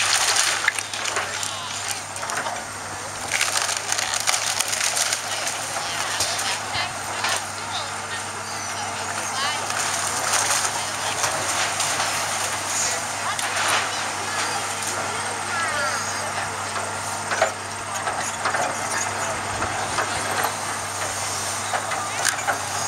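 An excavator engine rumbles steadily in the distance.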